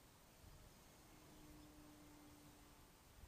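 A small aircraft drones faintly high overhead.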